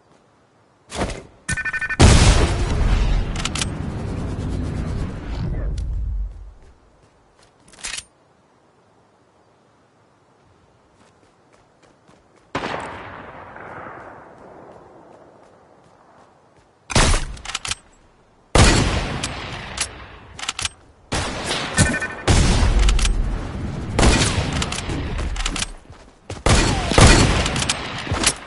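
Loud gunshots fire in bursts, with booming blasts between them.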